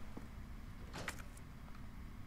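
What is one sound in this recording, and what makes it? A menu clicks open with a short whoosh.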